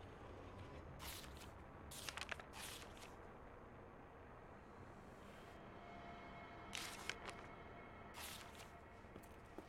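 Paper rustles as a sheet is handled and turned over.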